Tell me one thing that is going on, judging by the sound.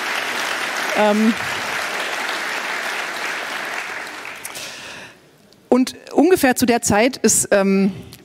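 A woman speaks with animation into a microphone in a large hall.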